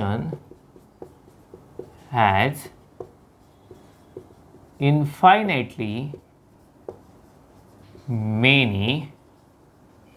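A man speaks calmly and clearly, close to a microphone, in short bursts.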